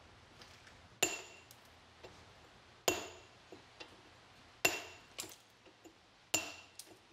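A hammer strikes a steel chisel against stone with sharp, ringing clinks.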